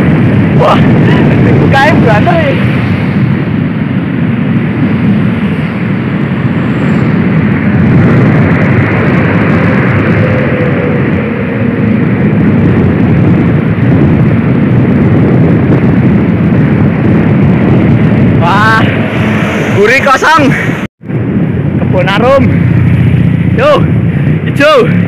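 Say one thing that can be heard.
Wind rushes loudly and steadily outdoors.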